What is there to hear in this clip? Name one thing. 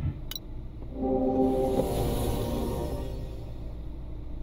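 A bright game chime rings out and fades.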